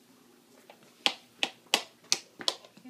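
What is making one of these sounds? A small object taps on a hard floor.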